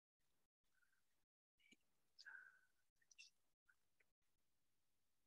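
An elderly woman speaks quietly over an online call.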